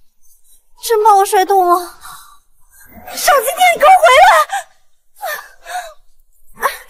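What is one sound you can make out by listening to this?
A young woman cries and wails loudly, close by.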